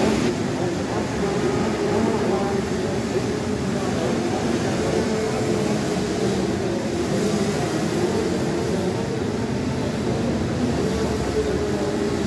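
Many small racing engines buzz and whine loudly close by.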